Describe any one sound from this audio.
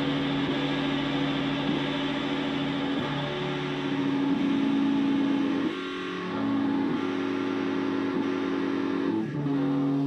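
A bass guitar plays a low line.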